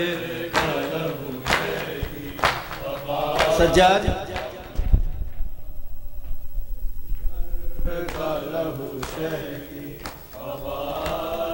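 Men beat their chests in a steady rhythm.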